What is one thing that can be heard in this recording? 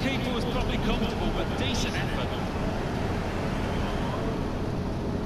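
A large crowd cheers and roars in a stadium.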